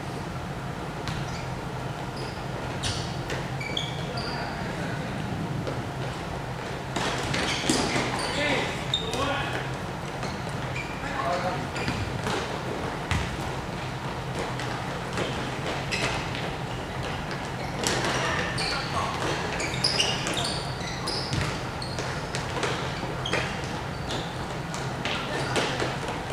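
A ball thumps as players kick it, echoing in a large hall.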